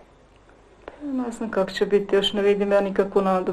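A woman sings loudly in a sustained voice.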